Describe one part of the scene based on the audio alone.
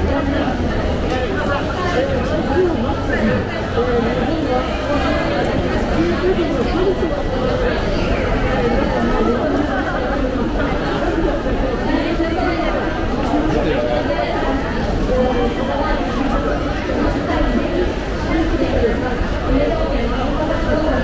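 A crowd of people chatters and murmurs all around in a busy echoing hall.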